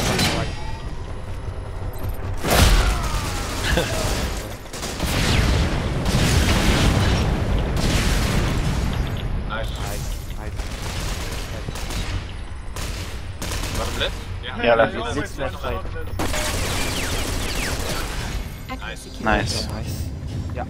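Guns fire in rapid bursts with loud bangs.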